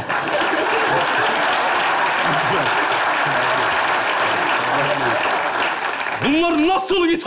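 An audience claps and laughs loudly.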